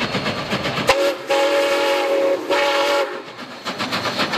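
A steam whistle blows loudly.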